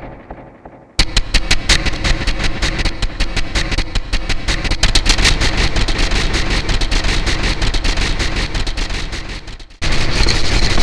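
Brushes swish and tap in a fast rhythm.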